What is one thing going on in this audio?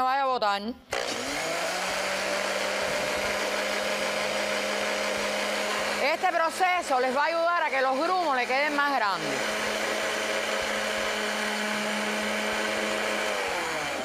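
A blender whirs steadily.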